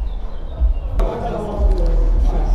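A group of young men chat nearby.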